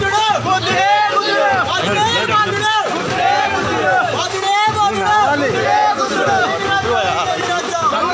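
A crowd of men shout and chant loudly close by.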